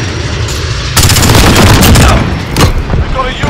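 A rifle fires in a rapid burst of loud shots.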